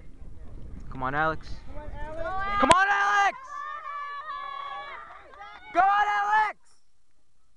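Spectators cheer and shout loudly for runners.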